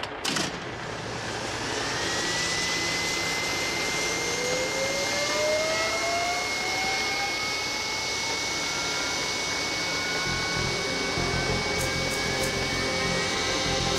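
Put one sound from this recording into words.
Gas hisses steadily and grows louder.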